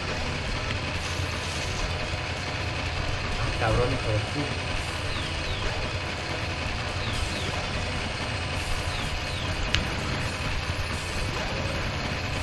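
Upbeat electronic game music plays steadily.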